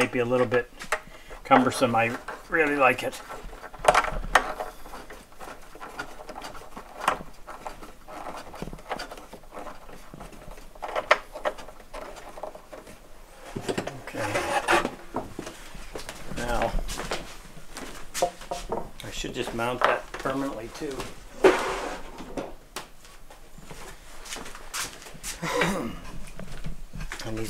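A man talks calmly and close by, explaining as he works.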